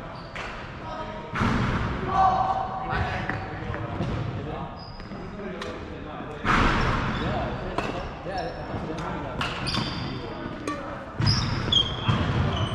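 Shoes squeak on a hard floor.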